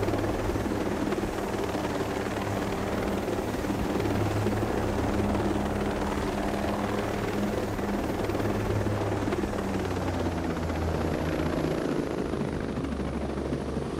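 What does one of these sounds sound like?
A helicopter's rotor thuds and its engine roars steadily.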